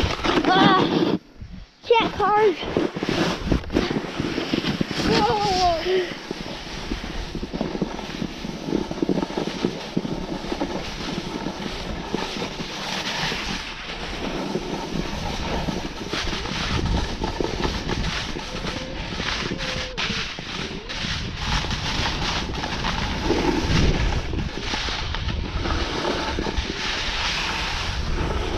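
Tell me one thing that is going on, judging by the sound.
Wind rushes past outdoors.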